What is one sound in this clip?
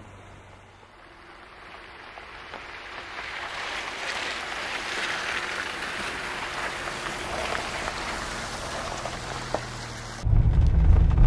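Tyres splash and crunch over wet slush as a car approaches and passes close by.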